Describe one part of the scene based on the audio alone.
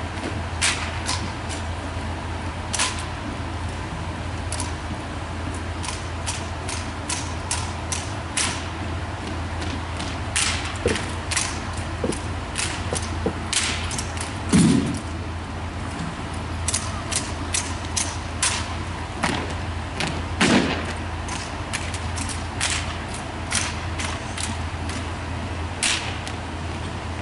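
Boots stamp in step on a wooden floor.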